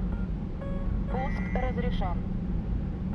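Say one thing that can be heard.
A warning tone beeps briefly in the cockpit.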